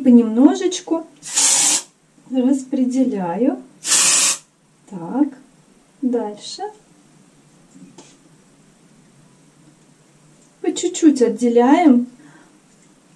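A young woman talks calmly and close by, in a small echoing room.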